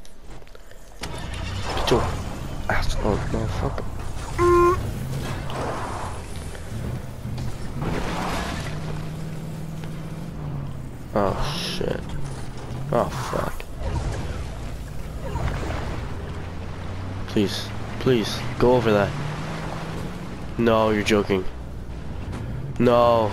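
A video game car's engine hums as it drives.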